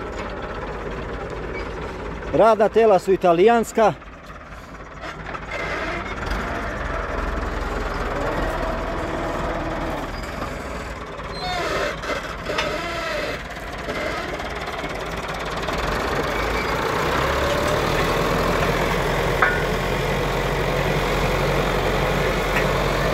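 Soil and roots crunch under a cultivator dragged through the ground.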